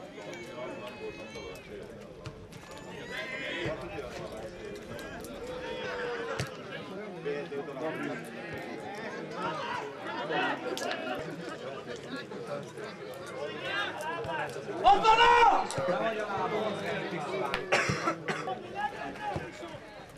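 A football thumps when kicked.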